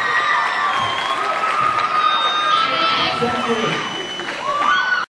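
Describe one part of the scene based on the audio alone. Drums and cymbals are played.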